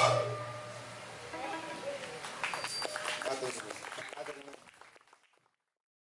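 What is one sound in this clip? Bamboo instruments play plucked and wooden tones outdoors.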